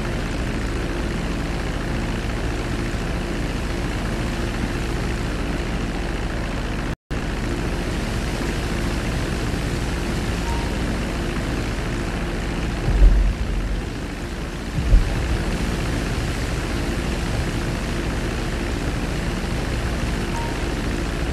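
Propeller engines drone steadily.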